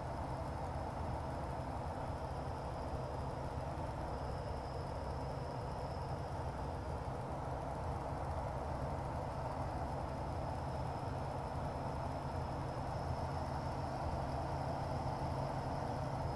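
Wind rushes past the canopy.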